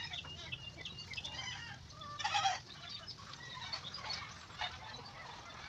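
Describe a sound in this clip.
A rooster clucks nearby.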